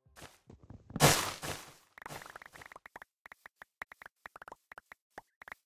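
Wooden blocks are chopped with quick, rapid knocks.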